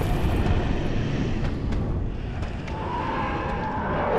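A sword clashes against a skeleton in a fight.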